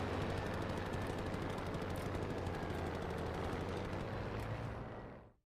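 A propeller plane's engine drones steadily, then fades out.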